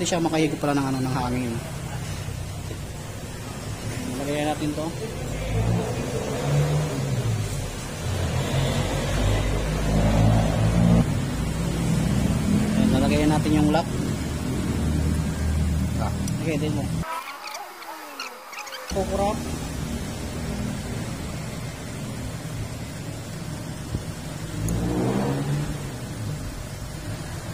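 Metal parts clink softly.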